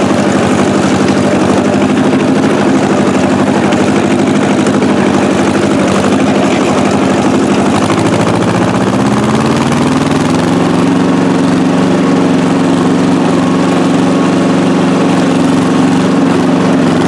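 An old tractor engine chugs loudly close by, speeding up partway through.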